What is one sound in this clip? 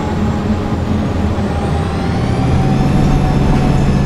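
A bus engine revs up, rising in pitch.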